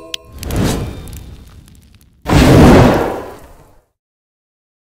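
Game bubbles burst with bright popping effects.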